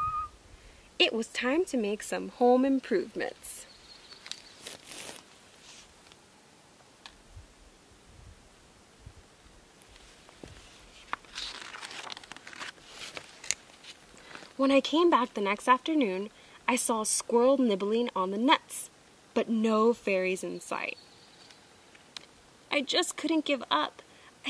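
A young woman reads a story aloud with expression, close by.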